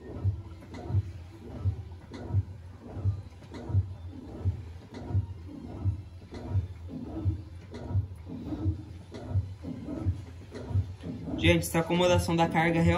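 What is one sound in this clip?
Water sloshes around inside a washing machine drum.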